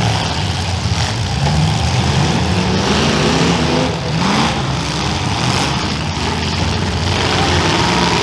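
Car engines roar and rumble loudly.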